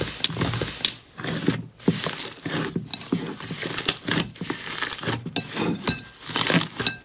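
Hands squish and knead thick slime with wet squelches and pops.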